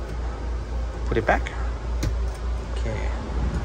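A small panel clicks shut.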